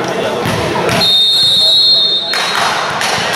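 A referee's whistle blows one long shrill blast.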